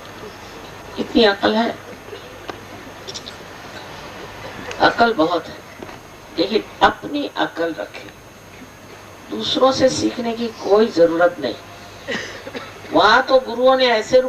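An elderly woman speaks calmly into a microphone, with pauses.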